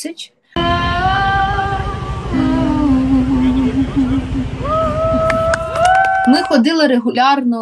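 A woman sings into a microphone over music.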